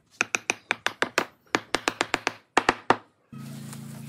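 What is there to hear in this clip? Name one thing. A rubber mallet taps rapidly on wood.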